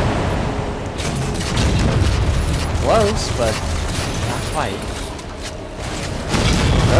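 Energy weapons fire in quick bursts.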